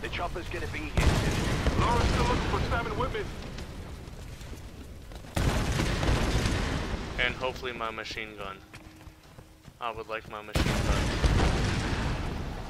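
Explosions boom loudly and rumble.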